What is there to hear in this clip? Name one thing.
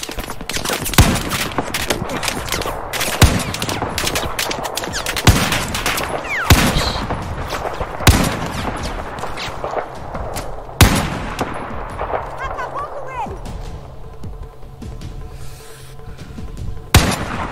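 A sniper rifle fires sharp, loud shots several times.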